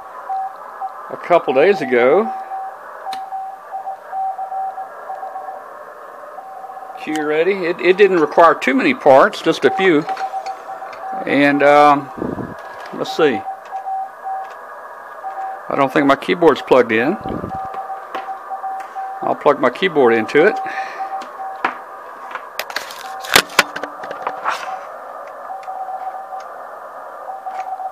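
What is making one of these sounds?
An electronic keyer beeps steady tones in short and long bursts.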